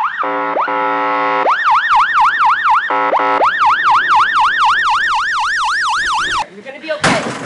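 A siren wails up and down.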